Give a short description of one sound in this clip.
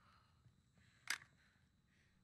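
A short metallic click sounds as ammunition is picked up.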